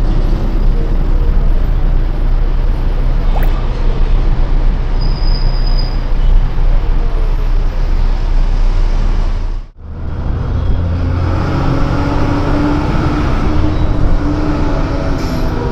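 A large vehicle's engine rumbles steadily up close.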